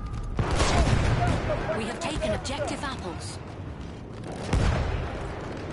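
A gun fires with loud, echoing bangs.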